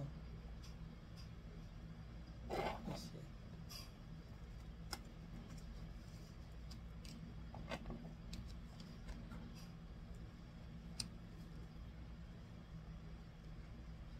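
Cards are laid down and slid on a table with soft taps.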